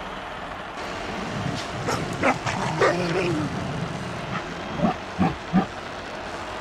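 A beast growls and roars loudly.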